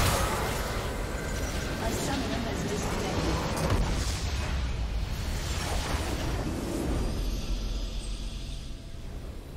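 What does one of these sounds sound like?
Game spells crackle and explode in a loud battle.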